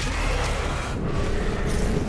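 A fiery explosion bursts with a loud boom.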